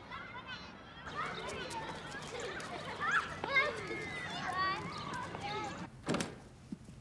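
Young children shout and chatter while playing outdoors.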